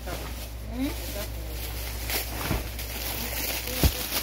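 A plastic bag crinkles in a woman's hands.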